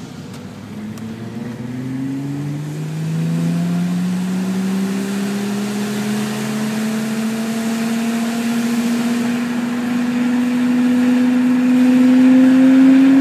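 A car engine accelerates, its pitch rising steadily.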